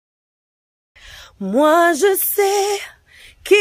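A young woman speaks in a drawn-out, sing-song voice up close.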